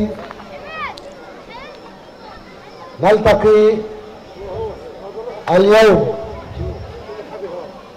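A man speaks loudly through a loudspeaker outdoors, with echo.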